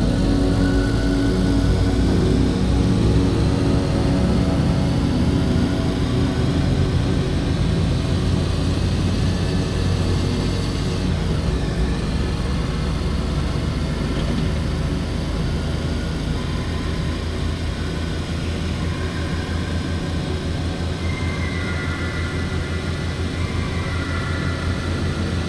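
Tyres hum on a paved road.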